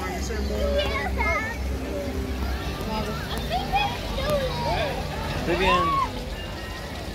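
Young children chatter and squeal nearby.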